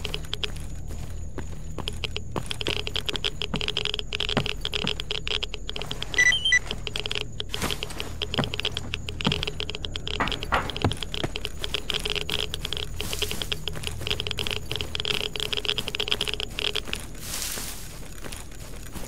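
Footsteps thud on wooden planks and dirt.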